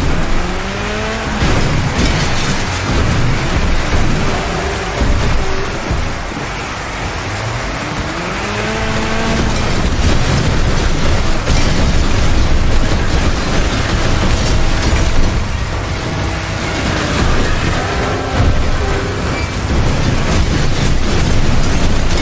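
A small engine revs up and down loudly.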